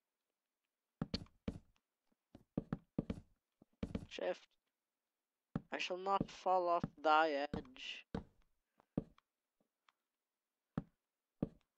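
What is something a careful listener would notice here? Wooden blocks knock softly as they are set down one after another.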